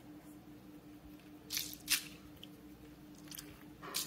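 A squishy ball is squeezed with a soft squelch.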